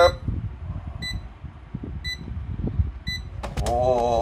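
An electronic device beeps briefly about once a second.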